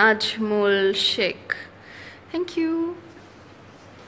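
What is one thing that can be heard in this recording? A young woman speaks close up, in an emotional, sobbing voice.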